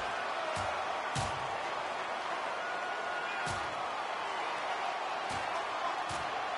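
Punches land with heavy, dull thuds.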